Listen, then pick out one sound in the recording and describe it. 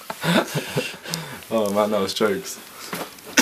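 A young man laughs excitedly close by.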